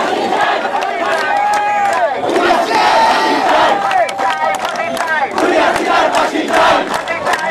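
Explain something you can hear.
Hands clap sharply among the crowd.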